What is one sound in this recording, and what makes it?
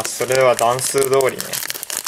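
Scissors snip through a crinkly foil wrapper.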